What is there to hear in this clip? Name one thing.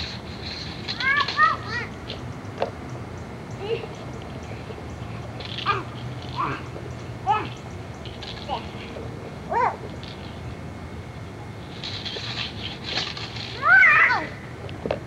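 A young girl squeals and calls out nearby.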